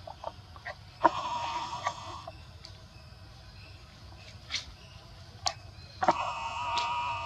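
A baby monkey squeals in high, wavering cries.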